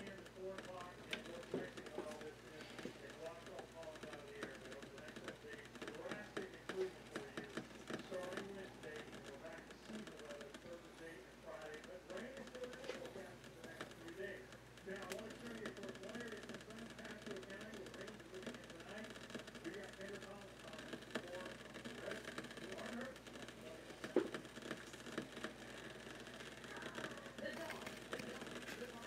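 Water bubbles and gurgles softly in a glass coffee maker.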